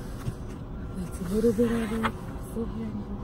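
A woman speaks close to the microphone.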